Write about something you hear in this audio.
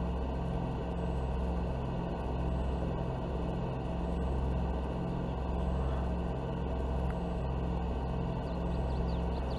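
A pickup truck engine drones steadily at speed.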